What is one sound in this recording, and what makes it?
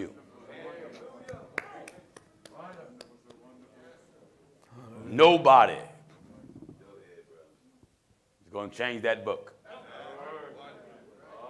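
A man preaches with animation into a microphone, his voice ringing in a large room.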